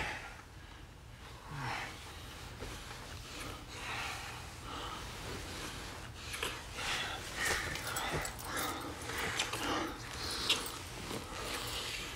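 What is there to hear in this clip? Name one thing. A couple breathes heavily while kissing.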